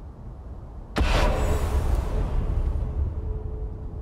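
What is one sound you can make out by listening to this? A sword strikes with a heavy, booming impact that slowly fades.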